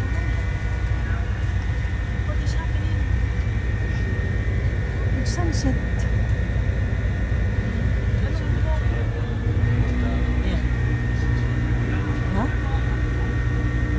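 A ship's engine hums low and steady throughout.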